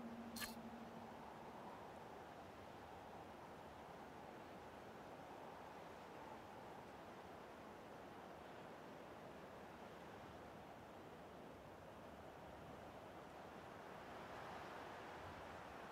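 A small flame crackles softly.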